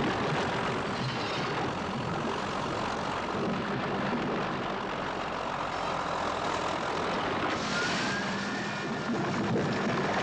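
Metal crumples and scrapes as a trailer is crushed.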